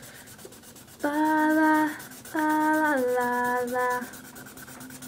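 A young woman sings a few notes close by.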